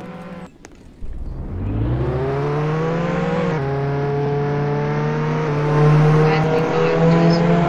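A car engine revs up and roars as the car speeds along the road.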